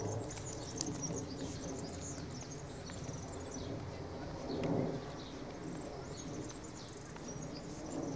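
A small child's footsteps patter on stone paving.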